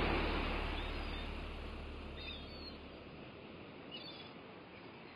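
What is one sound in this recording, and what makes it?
Birds chirp overhead.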